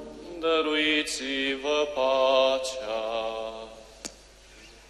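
A man chants a sung prayer through a microphone in a large echoing hall.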